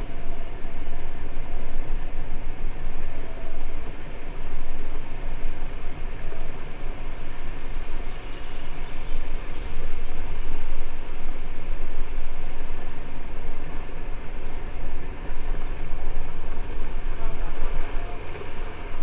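Wind buffets loudly against the microphone outdoors.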